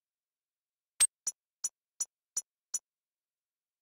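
Coins chime several times in quick succession.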